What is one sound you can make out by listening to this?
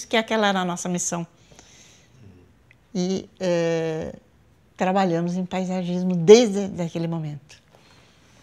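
An elderly woman speaks calmly and warmly, close to a microphone.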